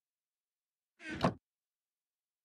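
A wooden chest thumps shut.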